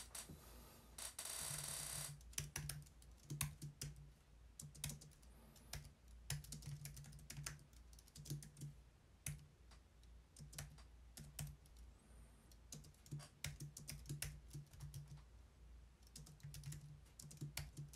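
Keys on a keyboard clatter in quick bursts of typing.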